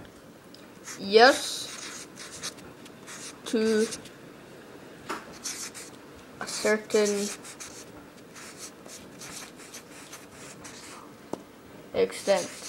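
A felt-tip marker squeaks and scratches across newspaper in short strokes.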